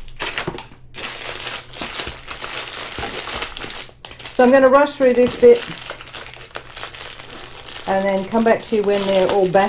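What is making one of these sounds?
A plastic package crinkles as it is handled.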